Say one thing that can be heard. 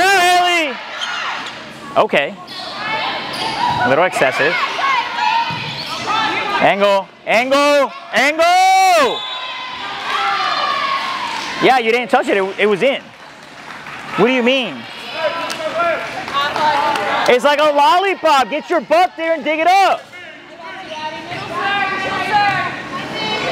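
Young women shout and cheer loudly in a large echoing hall.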